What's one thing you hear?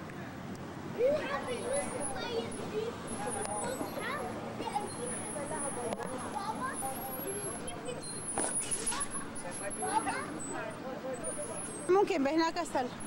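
Children shout and chatter nearby.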